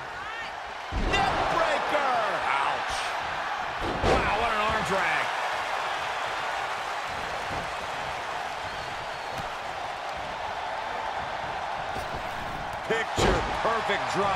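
A body slams heavily onto a wrestling ring mat with a loud thud.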